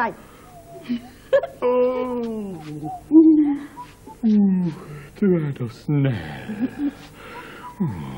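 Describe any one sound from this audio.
A girl laughs and talks excitedly.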